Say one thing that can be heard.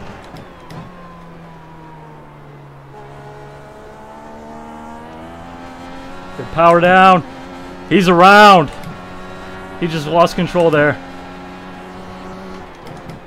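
A racing car engine drones steadily, rising in pitch and dropping with each gear change.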